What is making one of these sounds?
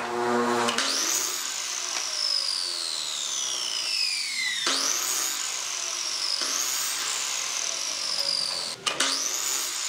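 A miter saw winds down with a long falling whine.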